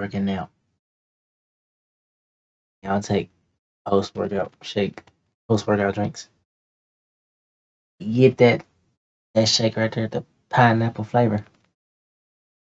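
A young man speaks with animation, close to a microphone, in short bursts.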